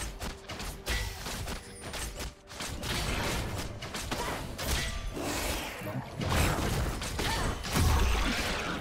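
Video game spell effects whoosh and boom in quick bursts.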